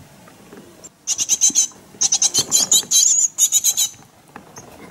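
A baby bird chirps loudly and rapidly, begging for food.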